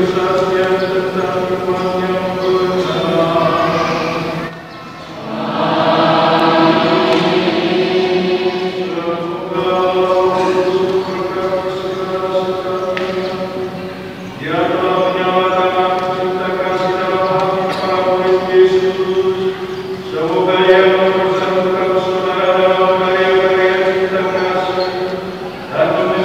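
A large congregation of men and women sings a slow hymn together in a large echoing hall.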